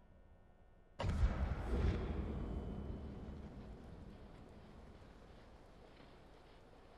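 A loud rushing whoosh bursts in and slowly fades.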